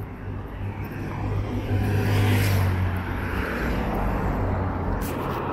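A motorcycle rides past with an engine hum.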